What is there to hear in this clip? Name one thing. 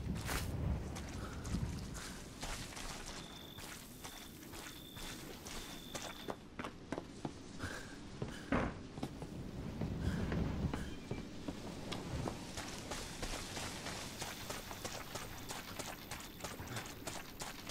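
Footsteps thud slowly on wooden boards.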